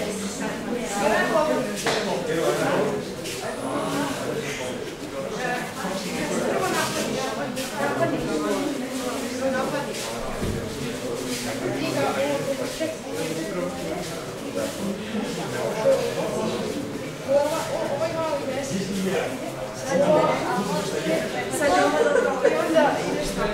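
Several young people talk at a distance in a large echoing hall.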